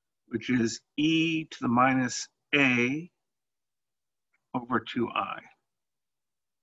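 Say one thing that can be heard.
A man speaks calmly and clearly into a close microphone, explaining.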